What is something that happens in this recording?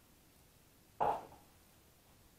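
A metal bowl is set down on a countertop with a clunk.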